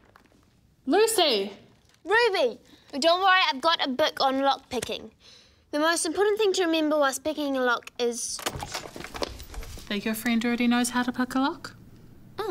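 A young girl speaks quietly nearby.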